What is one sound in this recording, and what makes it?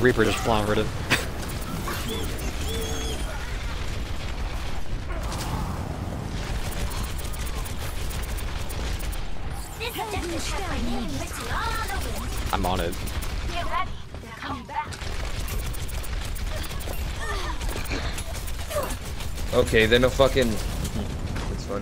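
Rapid gunfire rattles steadily.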